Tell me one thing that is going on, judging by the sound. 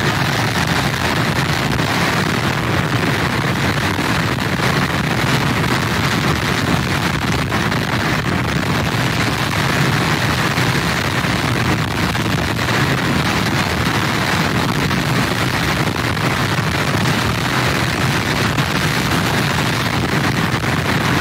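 Heavy waves crash and roar against pier pilings.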